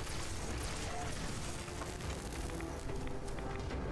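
Electric crackling bursts from a game weapon.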